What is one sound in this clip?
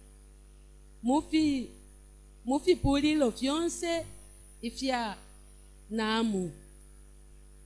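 A woman speaks into a microphone over a loudspeaker in short bursts.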